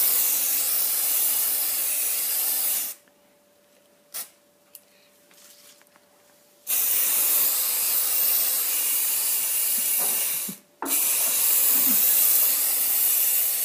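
An aerosol can sprays with a steady hiss in bursts.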